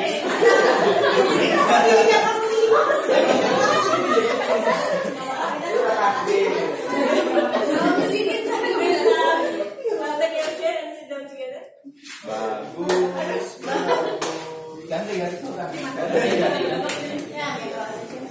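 Several adults chatter together in a room with some echo.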